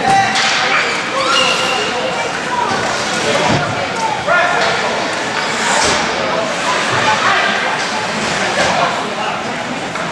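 Young players shout to each other in a large echoing rink.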